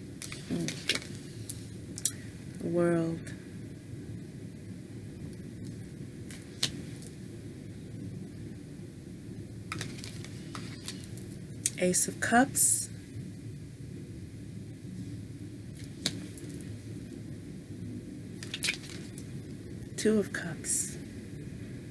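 Tarot cards are shuffled and handled.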